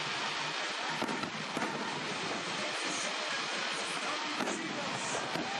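Fireworks bang with sharp booms.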